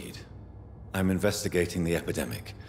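A second man answers calmly in a deep voice.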